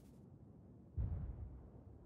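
A distant explosion booms with a low rumble.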